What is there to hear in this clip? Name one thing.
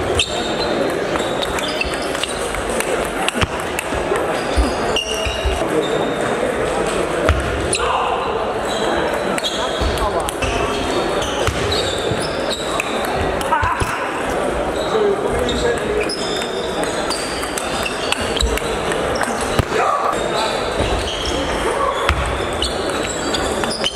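Table tennis balls click off paddles and tables in a large echoing sports hall.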